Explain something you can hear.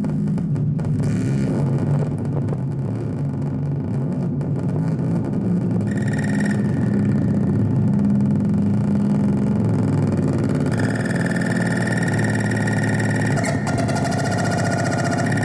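Electronic synthesizer music plays loudly with a deep pulsing bass line.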